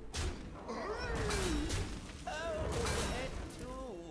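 Game creatures clash with magical impact sounds.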